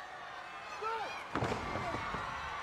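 A wrestler lands hard on the ring canvas with a loud thud.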